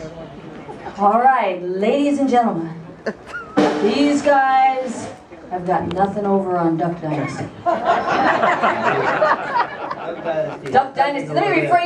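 A young woman sings into a microphone over loudspeakers.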